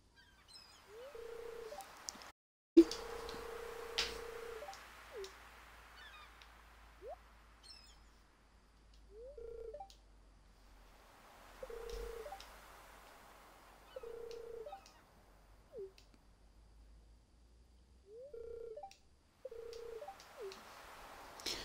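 A game's dialogue box pops open with short soft tones.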